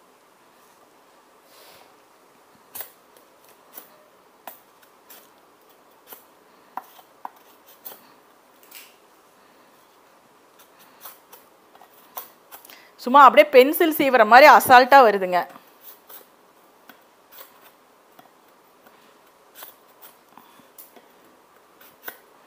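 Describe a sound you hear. A peeler scrapes the skin off a sugarcane stalk with short, rasping strokes.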